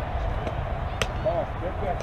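A fastpitch softball bat strikes the ball with a sharp crack.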